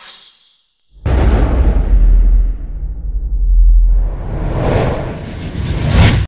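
Deep rumbling booms swell and fade.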